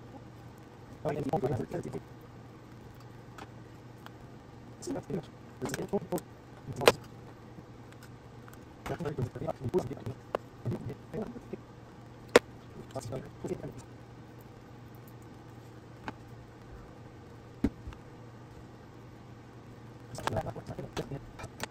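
Small plastic parts click and tap against each other up close.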